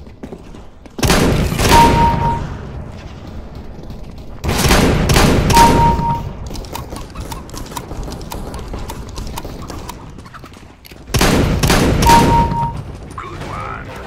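Loud shotgun blasts boom in quick bursts.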